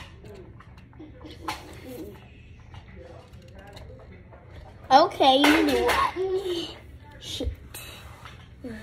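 A young child talks close by, then exclaims loudly with a high, excited voice.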